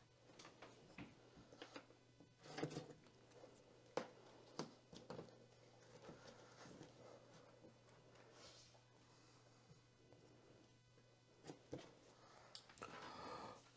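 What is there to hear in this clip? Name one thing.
Small plastic pieces tap and click softly on a tabletop.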